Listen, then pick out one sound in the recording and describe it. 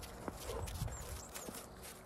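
A dog runs through the snow.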